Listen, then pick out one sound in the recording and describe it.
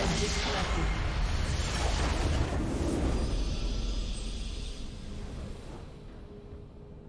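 A loud explosion booms and rumbles, then slowly fades.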